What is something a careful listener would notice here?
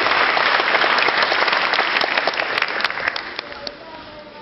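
An audience claps loudly in a large hall and the clapping fades.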